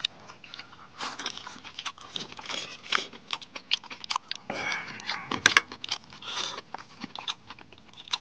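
A man slurps noodles loudly.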